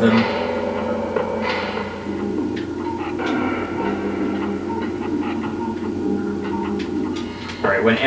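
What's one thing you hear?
Electronic game sound effects beep and whoosh.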